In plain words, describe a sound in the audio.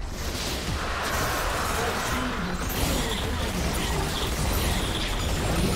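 Magic spells crackle and burst in a video game battle.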